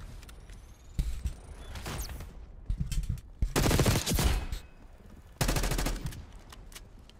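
Gunfire bursts loudly in a video game.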